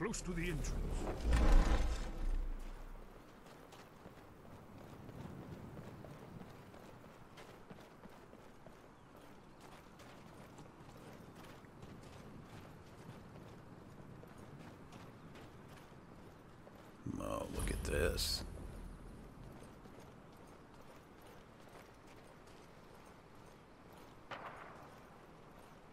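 Footsteps crunch steadily on stone and gravel.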